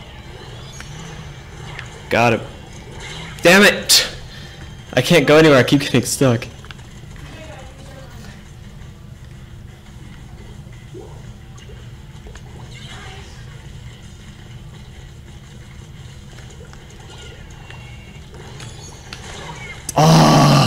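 Cartoonish ink blasts splatter loudly in a video game.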